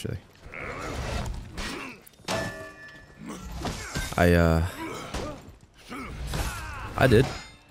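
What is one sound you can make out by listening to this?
Steel blades clash and ring in a fight.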